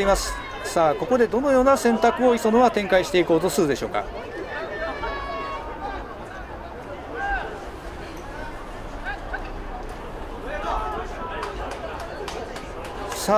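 Football players shout in the distance outdoors.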